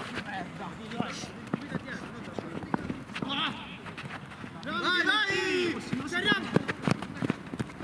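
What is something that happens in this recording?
Shoes scuff and patter on artificial turf.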